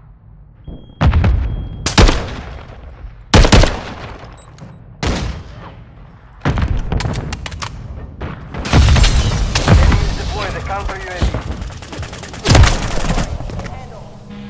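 A rifle fires in short, rapid bursts.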